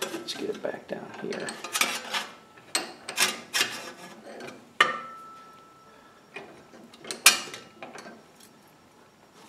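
A sheet of metal clanks and rattles as it is bent in a vise.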